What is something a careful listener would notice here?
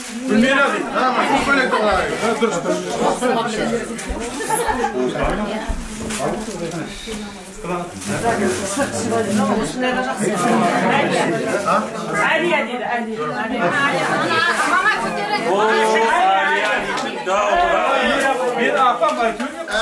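Several women and men talk and chatter close by.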